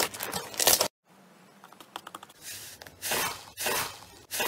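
A hand presses into a bowl of foam beads, which crunch.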